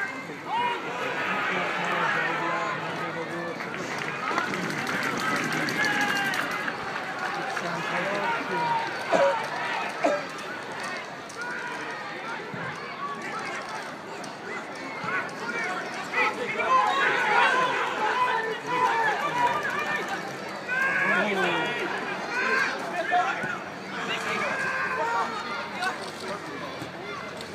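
A crowd of spectators chatters and shouts outdoors nearby.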